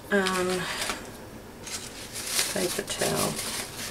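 Scissors clink as they are picked up.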